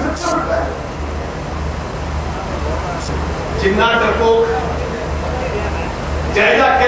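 An elderly man speaks forcefully into a microphone, heard through loudspeakers outdoors.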